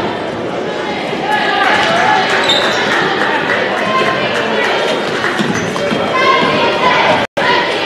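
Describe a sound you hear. A basketball bounces on a wooden floor.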